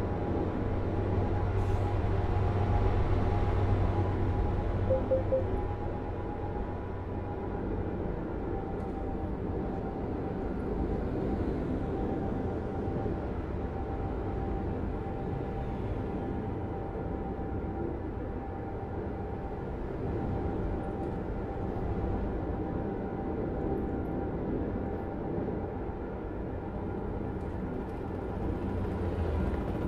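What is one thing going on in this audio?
Tyres roll on the road with a steady roar.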